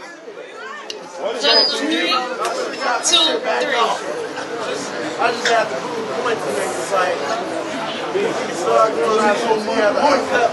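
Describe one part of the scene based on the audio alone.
A young man raps loudly and with animation.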